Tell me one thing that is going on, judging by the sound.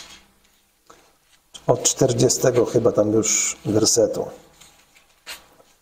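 Book pages rustle as a man turns them.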